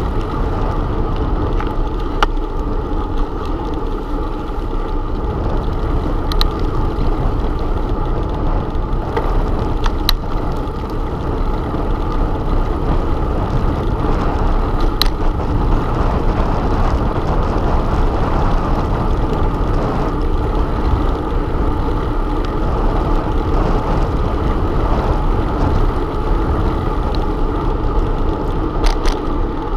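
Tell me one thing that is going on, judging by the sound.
Bicycle tyres roll steadily over a paved road.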